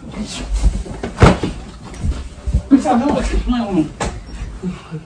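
A pillow thumps onto a bed.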